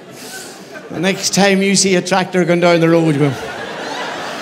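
A middle-aged man sings out loudly through a microphone in a large hall.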